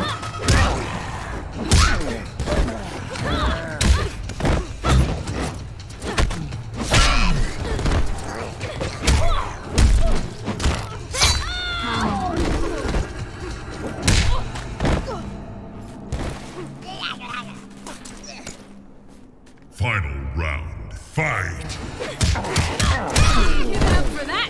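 A fighter grunts and yells with each strike.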